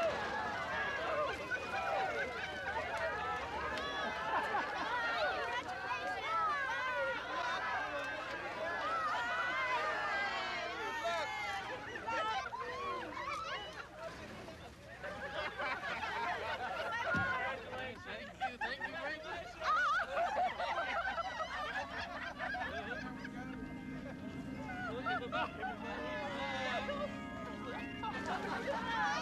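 A crowd of men and women chatter and call out cheerfully nearby.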